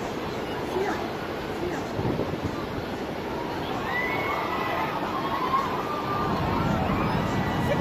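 Huge waves crash and surge loudly over a seafront.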